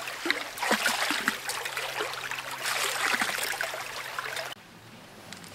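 A shallow stream trickles and gurgles nearby.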